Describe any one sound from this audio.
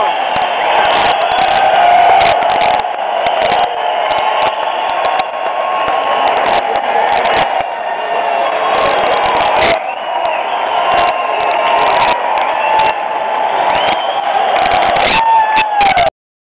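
A rock band plays loudly on a stage, heard from far back in a large arena and distorted.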